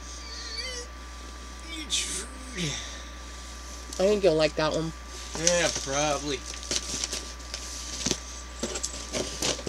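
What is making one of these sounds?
Cardboard boxes rustle and knock as they are handled.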